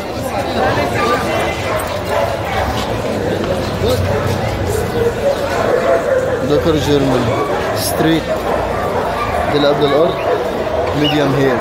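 A metal chain leash rattles.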